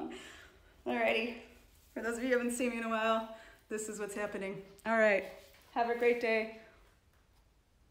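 A young woman talks close to the microphone with animation.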